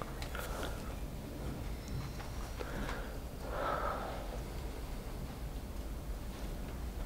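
A man lectures from across the room.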